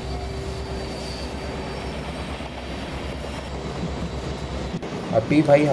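A train rumbles along the rails with a low, steady drone.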